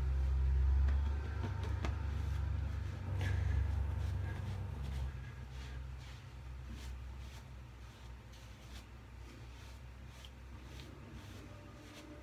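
A towel rubs and rustles against a man's face and neck.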